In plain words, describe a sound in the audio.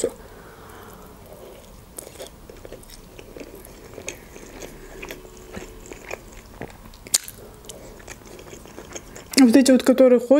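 A young woman chews food wetly, close to a microphone.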